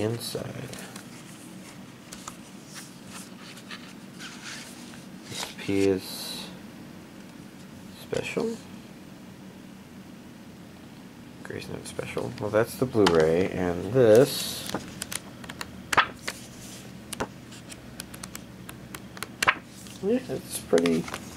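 Paper and card rustle as a booklet is handled.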